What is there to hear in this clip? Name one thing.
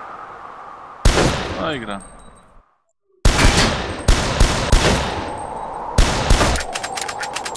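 A shotgun fires several loud blasts in quick bursts.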